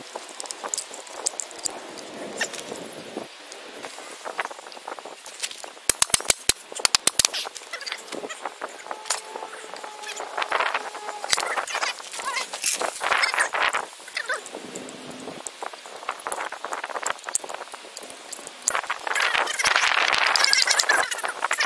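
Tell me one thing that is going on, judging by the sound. Metal tools clink and scrape against each other.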